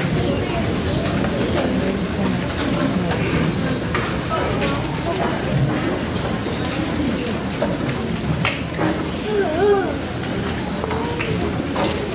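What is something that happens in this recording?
A large string orchestra plays in an echoing hall.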